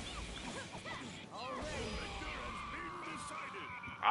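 A blast crashes and rumbles.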